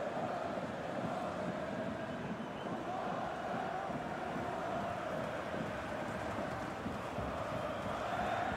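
A stadium crowd roars and murmurs.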